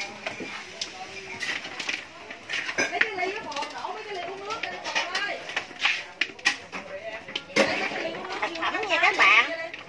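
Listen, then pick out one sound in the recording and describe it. A metal spatula scrapes and clanks in a wok.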